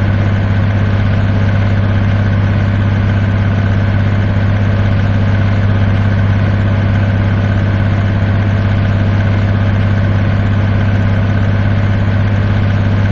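A truck engine drones steadily at a low, even pitch.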